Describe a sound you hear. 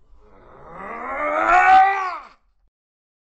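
A middle-aged man lets out a loud, rising yell close by.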